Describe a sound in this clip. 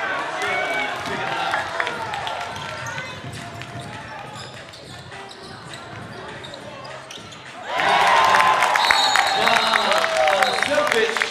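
A basketball thuds as it bounces on the floor.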